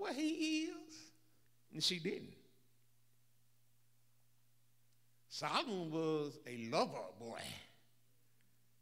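An elderly man preaches with animation into a microphone, in bursts with pauses.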